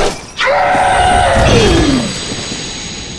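A creature lets out a wailing cry that falls in pitch.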